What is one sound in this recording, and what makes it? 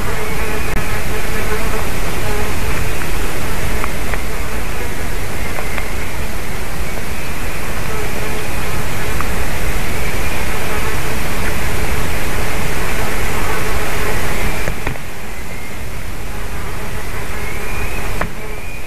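Wind blows steadily outdoors, rumbling against the microphone.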